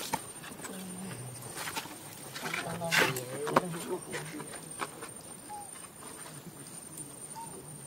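Monkeys scramble over a stone wall.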